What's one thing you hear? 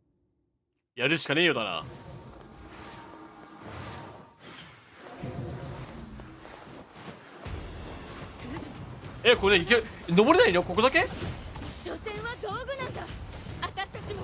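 Blades swish and clash in a fast fight.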